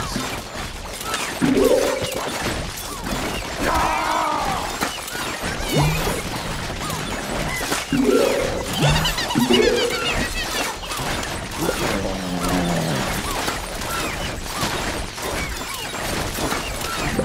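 Icy blasts crackle and shatter against zombies.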